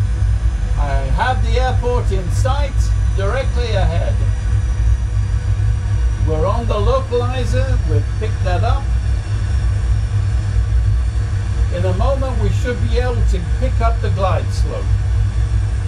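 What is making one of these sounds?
An older man speaks calmly and explains, close by.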